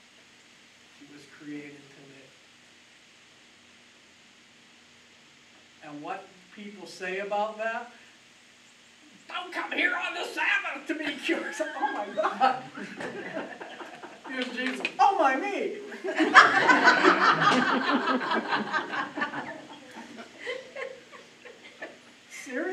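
An elderly man speaks calmly and warmly, close to a microphone.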